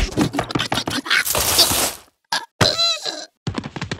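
A cartoon worm thumps onto the ground.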